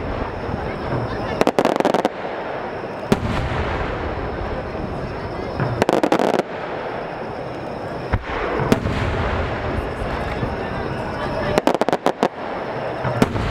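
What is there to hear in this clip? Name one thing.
Fireworks burst with loud booms and crackles outdoors.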